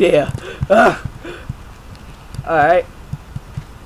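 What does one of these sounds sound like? A young man talks with animation into a microphone, close up.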